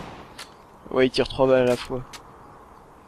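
A gun is reloaded with a metallic clatter.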